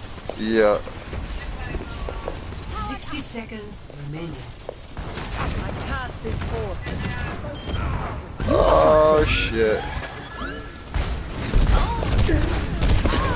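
Energy beam weapons hum and crackle as they fire.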